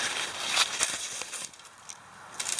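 Clothing rustles and brushes close against the microphone.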